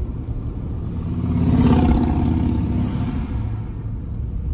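Another vehicle passes close by with a whoosh.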